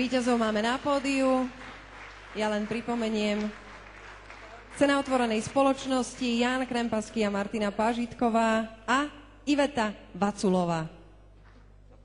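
A woman speaks clearly through a microphone in a large hall.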